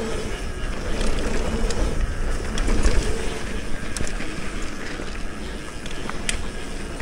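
A bicycle chain and frame rattle with small clicks over bumps.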